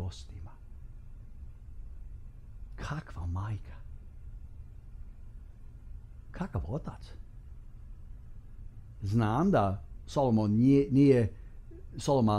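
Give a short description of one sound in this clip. A middle-aged man speaks with animation into a close microphone, with pauses.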